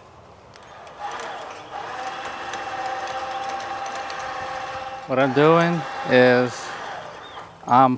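An electric winch motor hums steadily.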